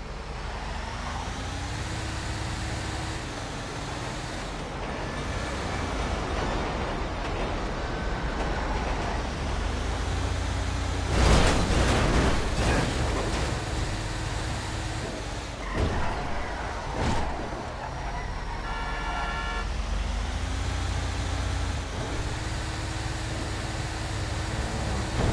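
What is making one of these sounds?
A heavy truck engine rumbles and revs as the truck drives along a road.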